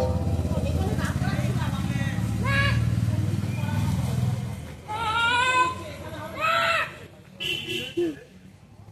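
A woman calls out in long, wavering tones nearby.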